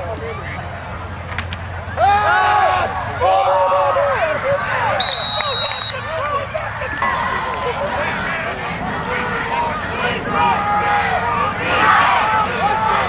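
A crowd cheers and shouts loudly in an open-air stadium.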